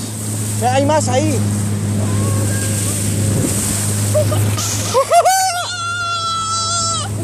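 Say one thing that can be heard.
Water rushes and splashes against a moving boat.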